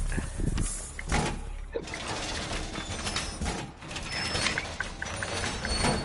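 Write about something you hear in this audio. A metal wall panel clanks and rattles as it is pushed into place.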